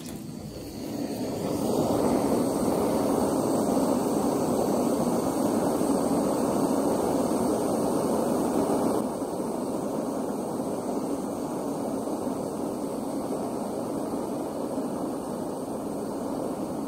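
A gas torch roars steadily.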